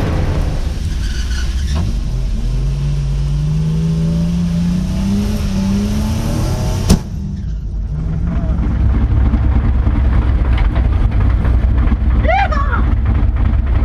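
A car engine roars and revs higher as the car speeds up.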